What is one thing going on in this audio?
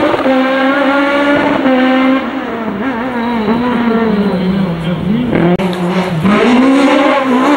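A rally car engine revs hard and roars past, its pitch rising and falling through gear changes.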